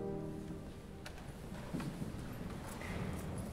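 Wooden organ stop knobs clunk as they are pulled.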